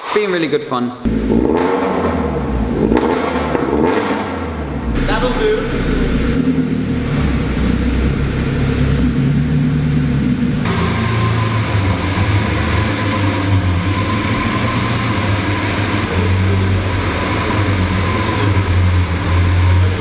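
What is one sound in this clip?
A sports car engine idles and revs loudly, echoing.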